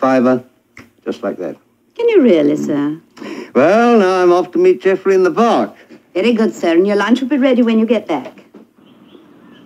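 A middle-aged woman speaks warmly nearby.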